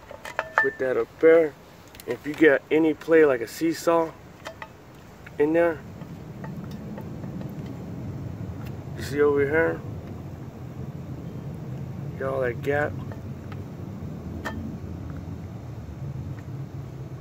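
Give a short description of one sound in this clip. A metal brake shoe clinks lightly against a metal drum.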